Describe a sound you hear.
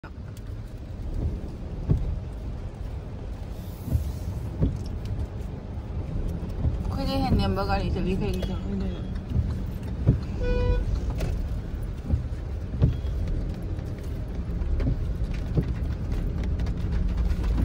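Rain patters on a car's windshield.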